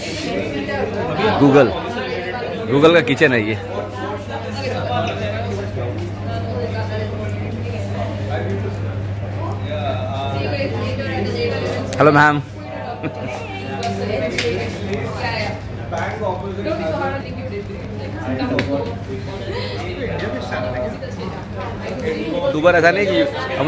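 People chatter in the background.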